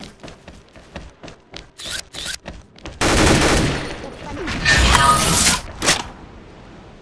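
A futuristic rifle fires.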